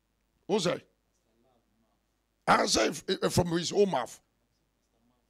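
A middle-aged man speaks with animation through a phone microphone.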